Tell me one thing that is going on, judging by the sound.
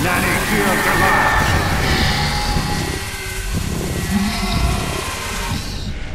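A gruff creature screams in pain.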